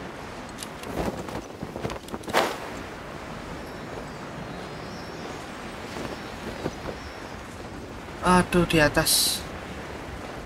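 A young man speaks into a microphone nearby, with animation.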